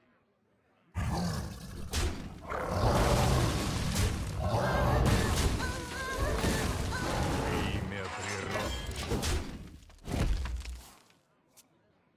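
Game creatures clash with loud thuds and crashes.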